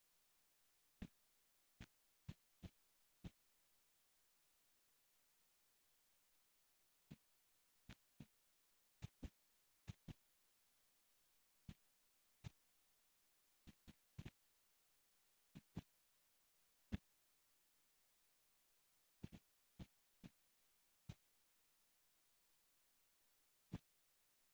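Blocks are placed with short, soft knocks, one after another at an uneven pace.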